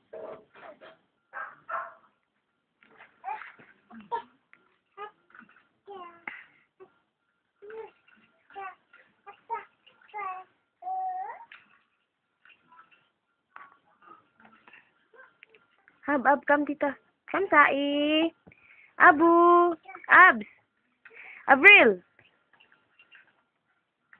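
A toddler babbles and squeals loudly nearby.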